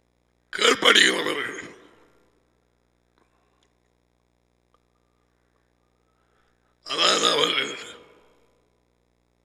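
A middle-aged man speaks with emphasis into a close headset microphone, in short bursts.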